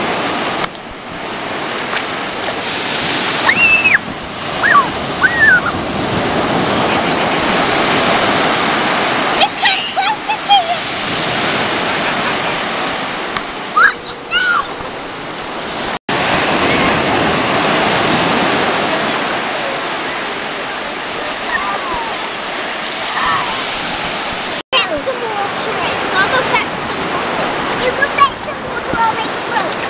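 Waves wash and break on the shore.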